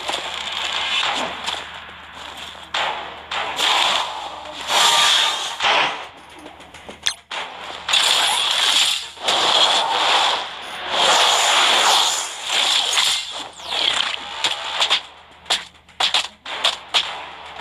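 Punches, blasts and explosions burst in quick succession during a fight.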